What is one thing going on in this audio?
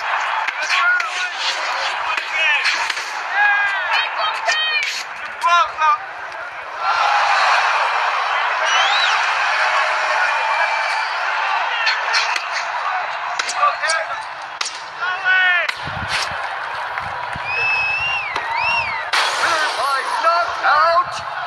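A crowd roars and cheers.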